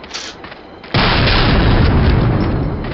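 An explosion bursts with a deep roar.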